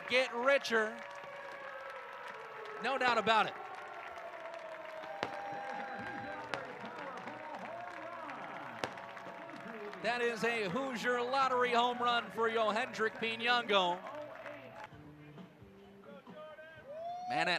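A crowd cheers and claps in a large ballpark.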